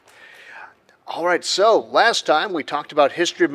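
A middle-aged man speaks warmly into a microphone.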